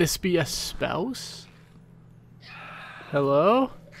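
A pale creature lets out a shrill cry.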